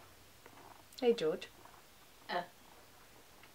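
A young woman speaks briefly, close by, in a quiet room.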